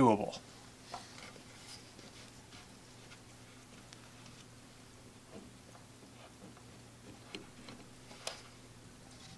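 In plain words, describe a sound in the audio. Fingers handle small plastic parts, making faint clicks and taps.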